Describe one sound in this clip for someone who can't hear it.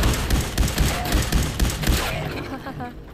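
Gunshots fire in rapid bursts, then stop.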